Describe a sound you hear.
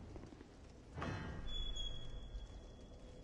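A heavy metal gate scrapes open.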